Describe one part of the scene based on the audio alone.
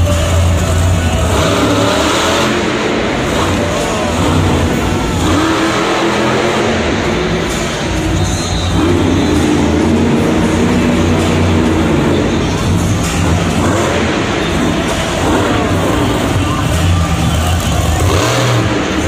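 A monster truck engine roars loudly and revs up and down.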